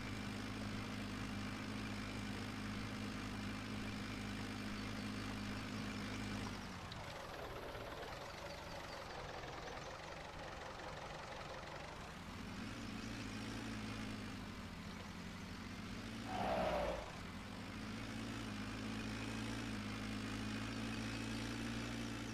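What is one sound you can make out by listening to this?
A tractor engine drones steadily, dropping lower for a while before rising again.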